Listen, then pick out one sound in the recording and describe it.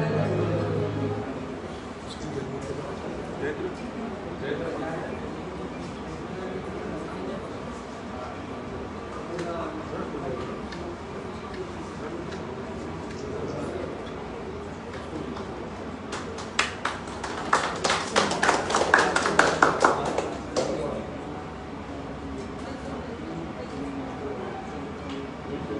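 Several men and women chat quietly nearby.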